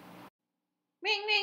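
A high, squeaky voice speaks in a playful tone.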